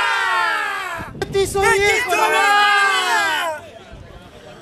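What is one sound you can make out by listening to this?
A group of men cheer and shout loudly outdoors.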